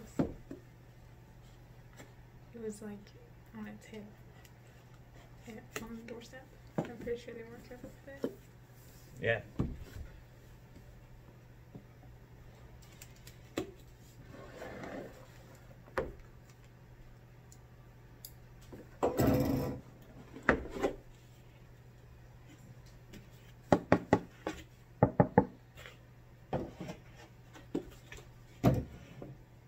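A lid knocks and thuds as a box is handled.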